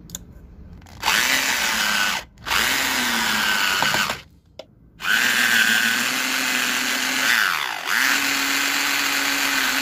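An electric drill whirs in bursts, driving a screw and boring through metal.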